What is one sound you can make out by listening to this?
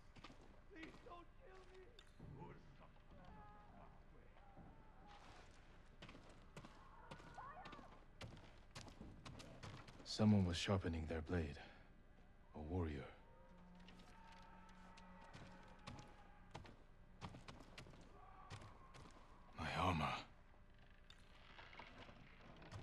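Footsteps tread softly on a wooden floor.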